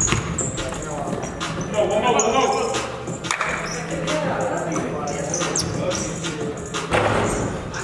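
Young men call out to each other in a large echoing gym.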